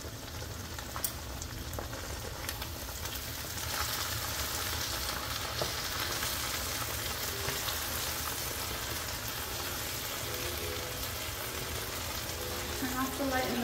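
A metal fork clinks and scrapes against a pan.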